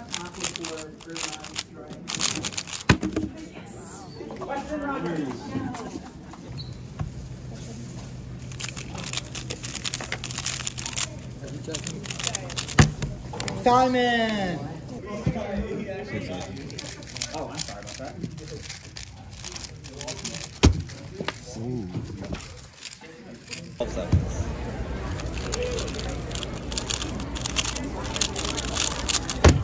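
A plastic puzzle cube clicks and rattles as it is turned quickly.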